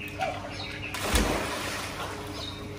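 A child jumps into water with a loud splash.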